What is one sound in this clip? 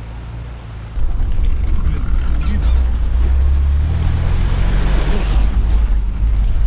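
Water splashes and swirls as a vehicle drives through a river.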